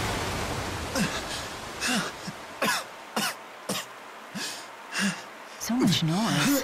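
A young man groans in pain.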